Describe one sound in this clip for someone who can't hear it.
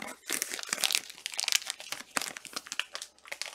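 Plastic wrapping crinkles as hands handle a card pack.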